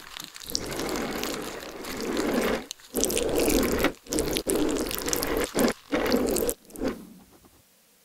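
A ballpoint pen scratches across paper close up.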